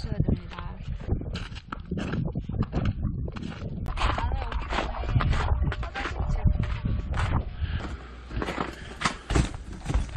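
Footsteps crunch on snow.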